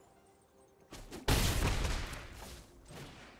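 A game sound effect whooshes as a card is played.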